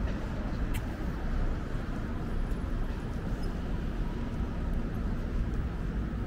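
A bus engine hums nearby.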